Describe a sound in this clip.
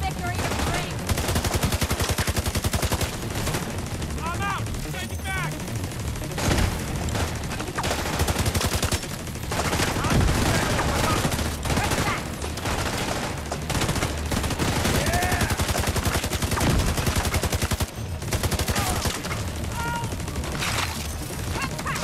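Automatic rifles fire in rapid, rattling bursts.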